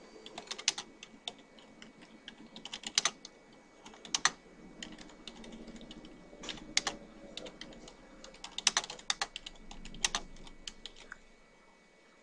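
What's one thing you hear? Keyboard keys clack in quick bursts of typing.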